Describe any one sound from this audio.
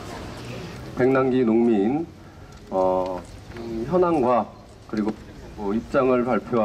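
A man speaks forcefully into a microphone over a loudspeaker outdoors.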